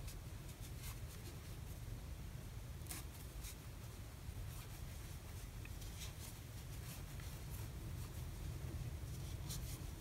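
A crochet hook clicks softly as yarn rustles through stitches.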